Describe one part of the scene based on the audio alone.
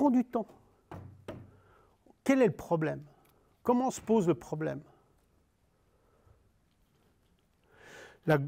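An older man lectures through a microphone in a room with a slight echo, speaking in short bursts with pauses.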